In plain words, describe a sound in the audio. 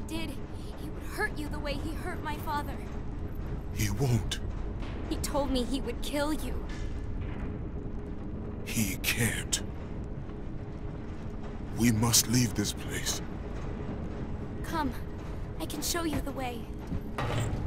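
A young woman speaks softly and fearfully, close by.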